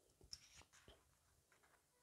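A thin metal pick clicks faintly against the parts of a lock.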